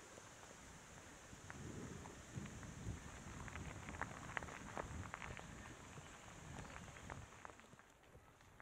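Wind rushes past loudly, then eases off.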